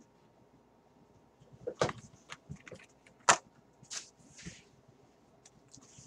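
A cardboard box flap is opened with a scrape.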